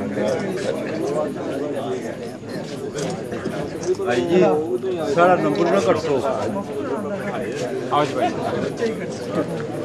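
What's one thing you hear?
A man talks with animation close by.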